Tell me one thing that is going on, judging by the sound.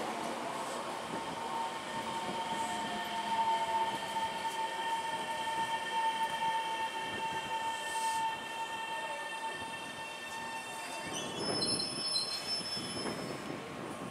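Train brakes squeal with a steady high tone.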